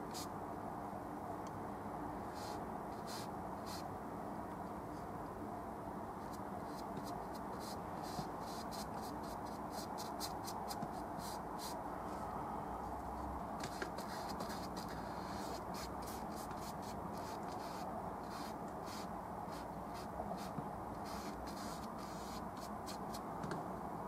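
A brush scrapes and dabs on canvas.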